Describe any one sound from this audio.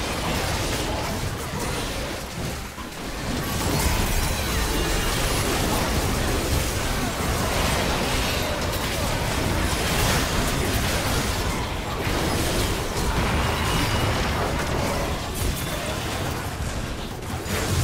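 Magic blasts and hits crash and crackle in a busy video game battle.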